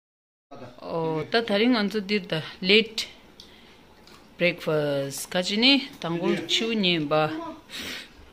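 Dishes clink on a table.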